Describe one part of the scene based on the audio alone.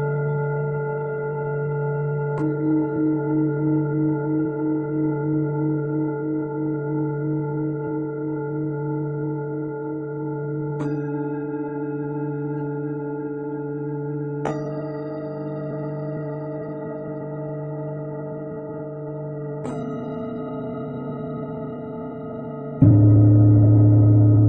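A steady electronic hum drones, jumping to a new pitch every few seconds.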